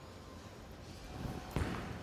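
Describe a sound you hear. A bowling ball thuds onto a wooden lane and starts to roll.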